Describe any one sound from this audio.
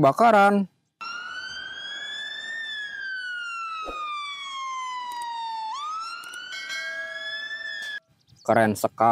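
A fire engine siren wails, rising and falling.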